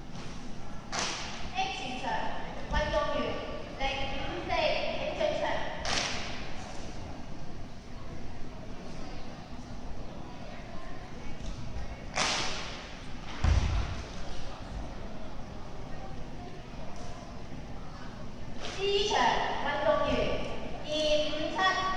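Feet shuffle and tap softly on a wooden floor in a large echoing hall.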